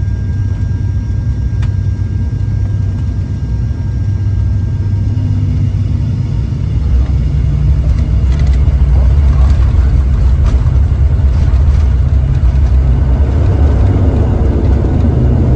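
A jet plane's engines roar steadily as it speeds along a runway, growing louder.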